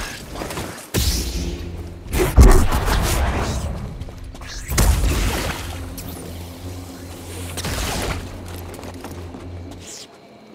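A laser sword hums and swooshes.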